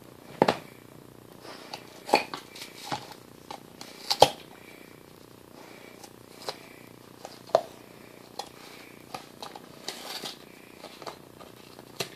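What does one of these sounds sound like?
A dog gnaws and chews on a rubber toy close by.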